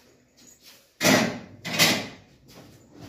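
Metal dishes clatter.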